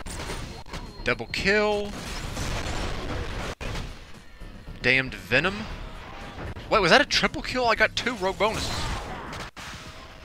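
Futuristic guns fire in quick bursts of warbling electronic shots.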